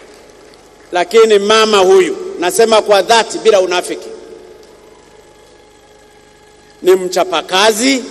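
An older man speaks loudly and with animation into a microphone, heard through loudspeakers in a large hall.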